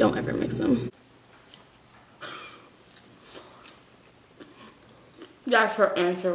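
A young woman chews food with soft smacking sounds.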